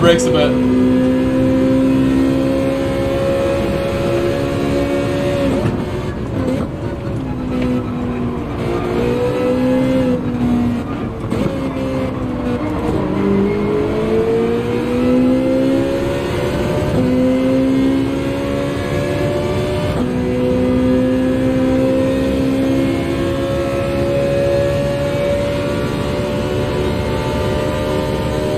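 A racing car engine roars steadily, its pitch rising and dropping as it shifts gears.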